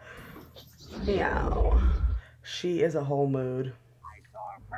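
A young woman talks with animation close by.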